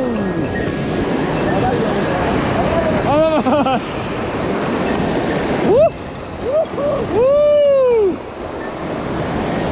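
Water rushes and splashes loudly over rocks nearby.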